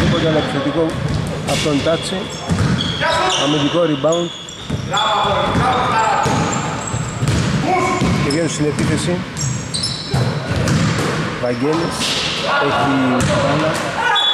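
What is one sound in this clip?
Sneakers squeak sharply on a wooden court in an echoing gym.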